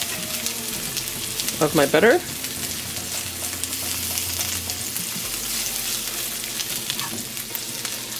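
A spatula scrapes and stirs food in a frying pan.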